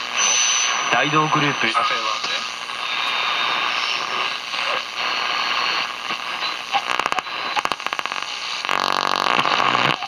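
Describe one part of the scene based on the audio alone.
A loudspeaker plays brief bursts of voices and music between stations.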